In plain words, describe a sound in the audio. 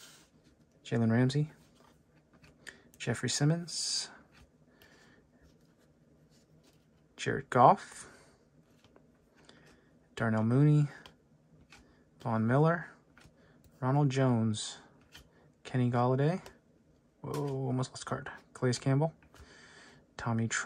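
Glossy trading cards slide and rustle against each other.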